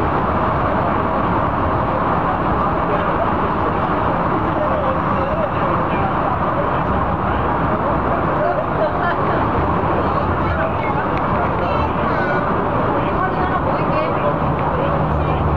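Tyres roar steadily on the road inside an echoing tunnel.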